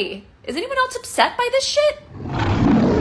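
A young woman speaks in a shaky, tearful voice close by.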